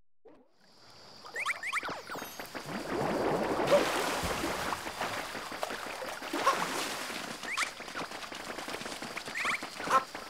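Cheerful game music plays.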